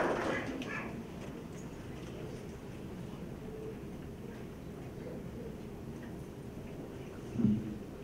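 A crowd murmurs quietly.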